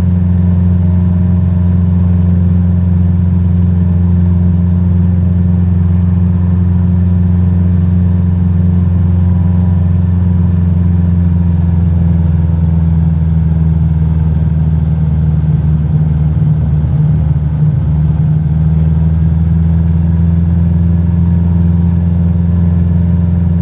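A small propeller plane's engine drones loudly and steadily from inside the cabin.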